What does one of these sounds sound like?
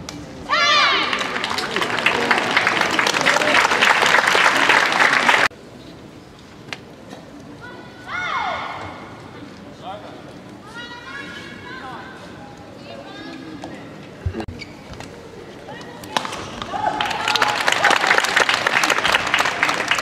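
A racket strikes a shuttlecock.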